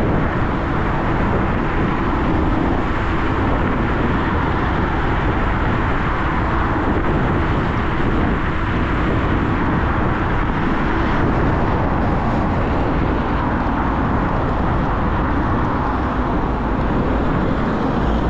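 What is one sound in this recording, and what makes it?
Wind rushes loudly and steadily over a fast-moving motorcycle.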